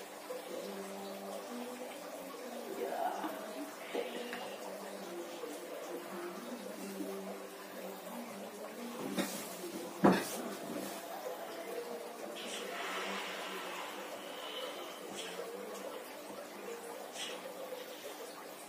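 Hands rub and knead bare skin on a shoulder.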